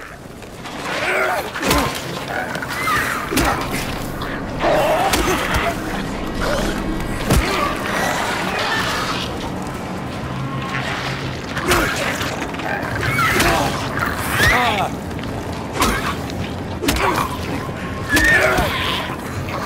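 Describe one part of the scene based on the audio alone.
A creature shrieks and groans in distorted bursts.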